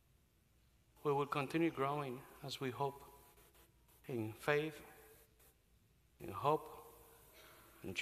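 A man speaks calmly and with animation through a microphone, echoing in a large hall.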